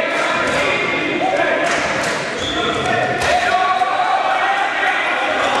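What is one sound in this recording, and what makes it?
Voices of young players call out in a large echoing hall.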